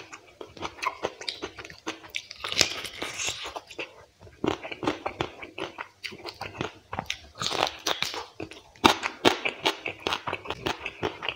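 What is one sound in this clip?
Fingers squish and mix wet rice and curry on a plate.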